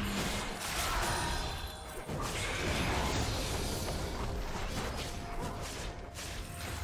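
Video game spell effects whoosh and clash during a fight.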